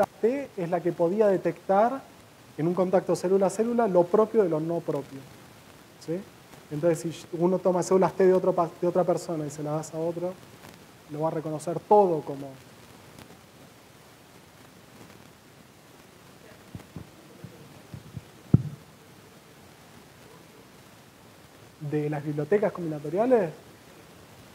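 A man speaks calmly to an audience through a microphone in a large room.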